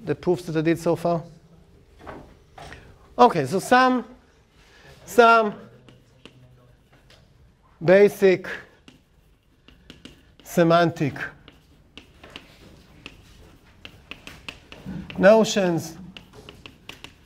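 An elderly man speaks calmly in short bursts.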